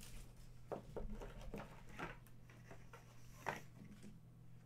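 Plastic rustles and clicks as hands handle a card case.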